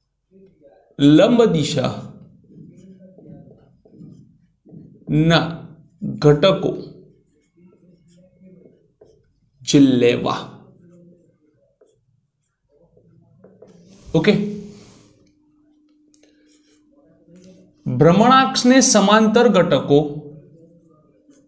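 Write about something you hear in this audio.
A man speaks in short bursts, explaining calmly, close by.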